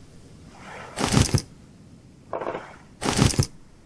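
A blade strikes a wooden crate with dull, heavy thuds.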